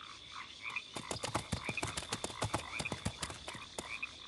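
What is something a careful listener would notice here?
A creature's feet patter quickly on the ground.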